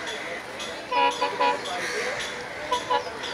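A train horn blares in short blasts.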